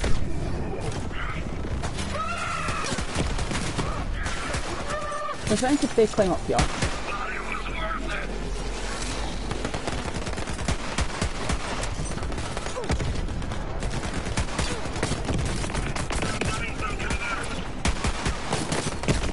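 Gunfire crackles rapidly in a shooter game.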